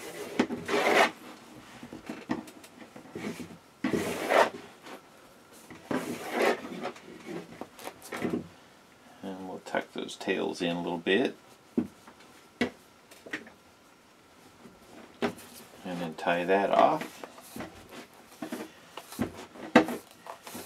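Cloth rustles as hands roll and fold it.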